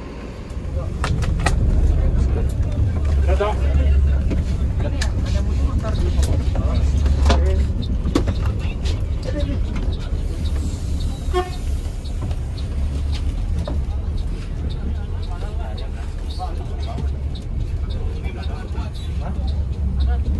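Loose items rattle and click inside a moving bus.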